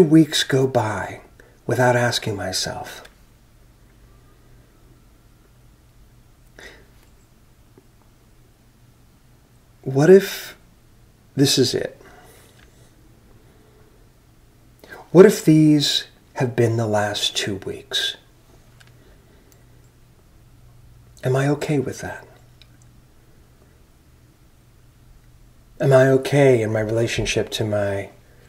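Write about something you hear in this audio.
A middle-aged man speaks calmly into a microphone over an online call, with long pauses.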